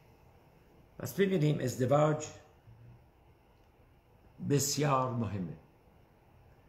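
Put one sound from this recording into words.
An elderly man speaks slowly and calmly, close by.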